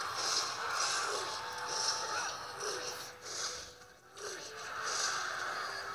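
Game troops clash with a steady crackle of battle noises.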